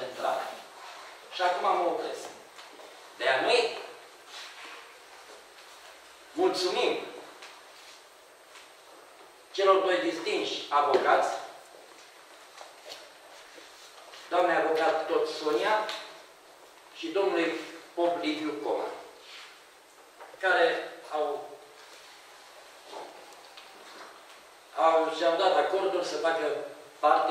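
An elderly man speaks calmly in short phrases with pauses, close by.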